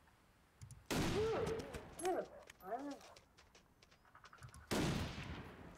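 A rifle fires loud shots that echo and fade.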